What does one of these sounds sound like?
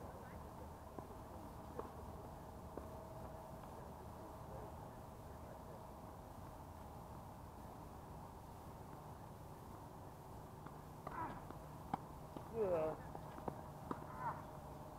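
Tennis balls are struck with rackets in sharp pops.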